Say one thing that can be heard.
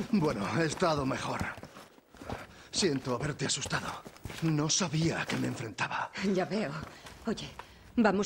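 A middle-aged man talks calmly and apologetically.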